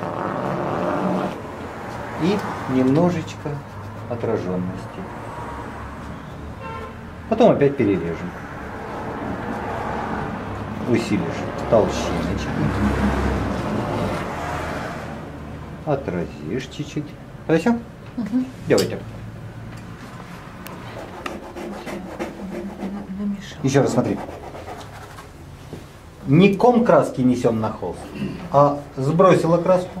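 A man talks calmly and steadily, close by.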